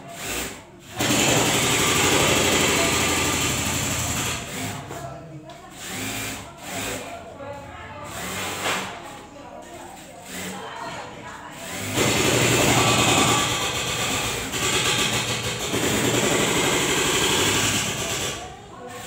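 A sewing machine whirs and rattles in long bursts, close by.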